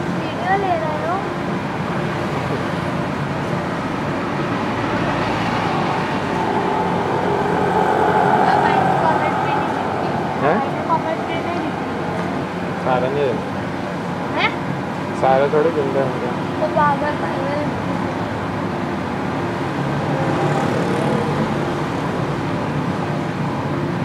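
Hot oil sizzles and bubbles steadily in a pan.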